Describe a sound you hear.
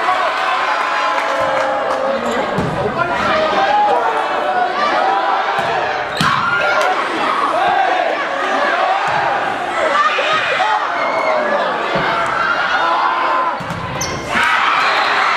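A volleyball is struck with sharp slaps.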